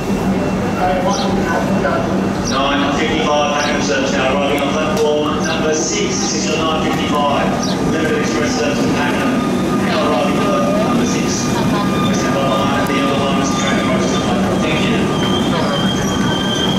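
A crowd of men and women chatter excitedly nearby.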